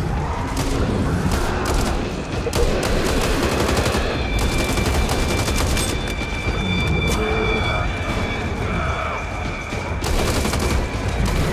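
Zombies growl and snarl.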